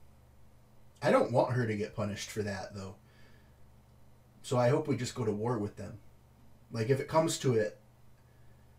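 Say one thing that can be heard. A young man talks calmly and close into a microphone, in short bursts.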